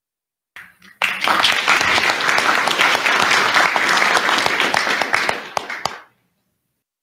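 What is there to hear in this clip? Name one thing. A crowd applauds, heard over an online call.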